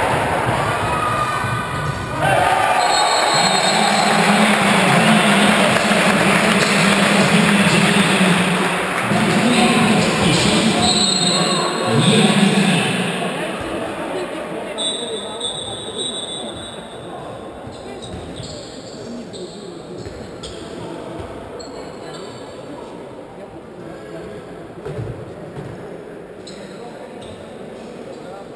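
A crowd chants and cheers loudly in a large echoing hall, then quiets down.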